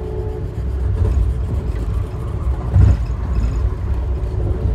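A level crossing bell rings briefly as the train passes.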